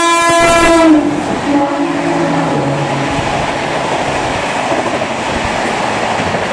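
Passenger coaches rush past at speed, rumbling over the rails.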